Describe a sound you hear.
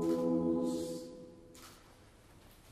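A choir finishes singing a held chord.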